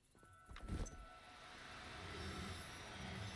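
A magic spell hisses and crackles.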